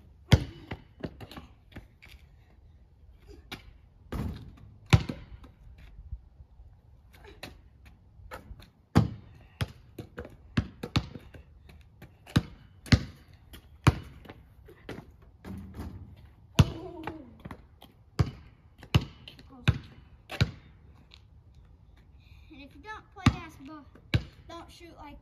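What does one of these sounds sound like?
A basketball bounces hard on pavement outdoors.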